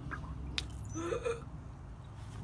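A chicken squawks close by.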